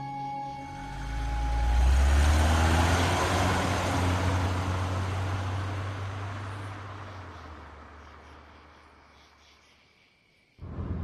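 A motor home's engine rumbles down a road and slowly fades into the distance.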